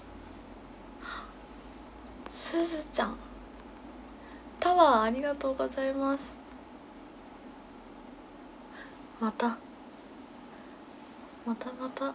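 A young woman talks animatedly and close up, in short bursts.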